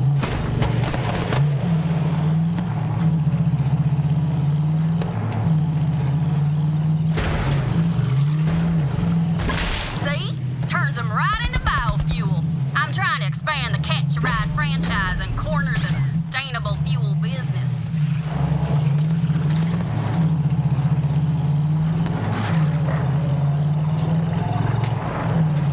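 A vehicle engine roars steadily as it drives over rough ground.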